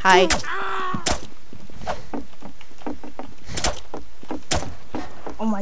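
A knife slashes with sharp hits.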